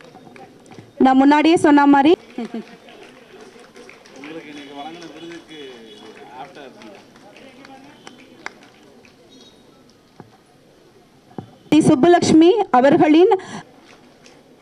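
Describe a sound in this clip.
A woman speaks loudly into a microphone over a loudspeaker, announcing.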